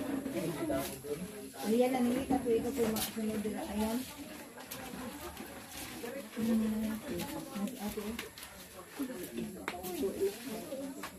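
Adult women talk and sob quietly close by.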